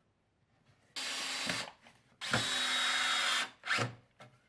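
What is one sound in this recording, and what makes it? A cordless drill drives screws into timber.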